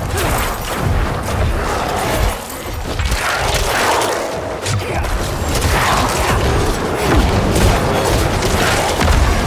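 Weapons slash and strike monsters in quick, heavy blows.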